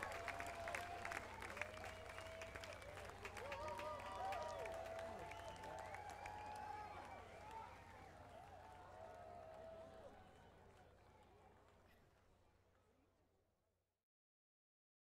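A large outdoor crowd cheers and claps, then fades away.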